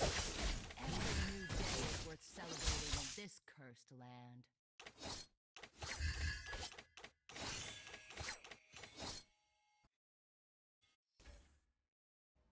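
Swords clash and magic blasts burst in rapid bursts.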